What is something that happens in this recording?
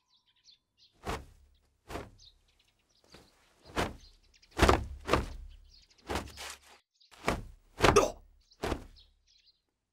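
A robe whooshes sharply through the air.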